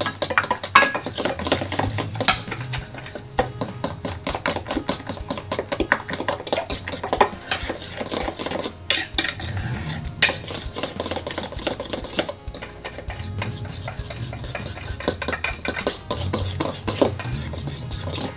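A hand squelches and stirs a wet mixture in a metal bowl.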